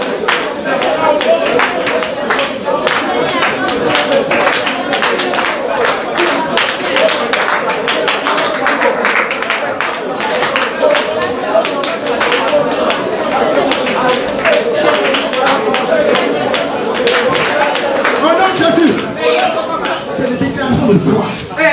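Women clap their hands in rhythm.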